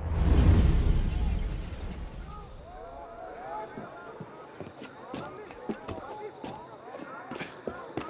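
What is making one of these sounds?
Footsteps thud and clatter on wooden planks and roof tiles.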